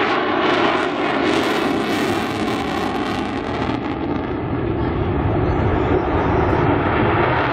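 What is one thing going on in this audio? A jet engine roars loudly overhead, its hissing roar dulling as the jet passes.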